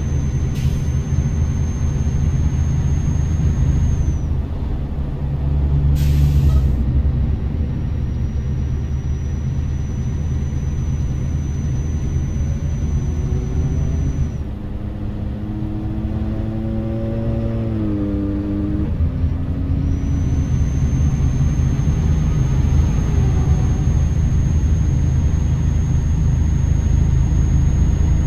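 A truck engine rumbles steadily at cruising speed.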